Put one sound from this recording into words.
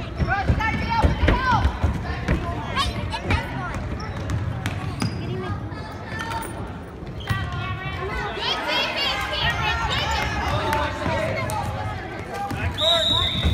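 Spectators in a large echoing gym cheer and call out.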